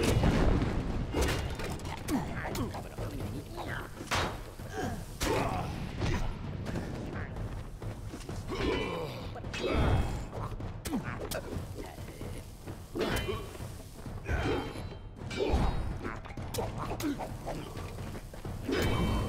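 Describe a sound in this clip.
Weapons strike creatures with heavy thuds.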